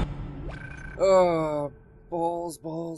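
Electronic menu tones chime and glide.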